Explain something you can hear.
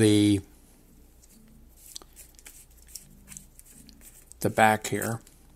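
Small plastic parts click and rustle in a man's hands.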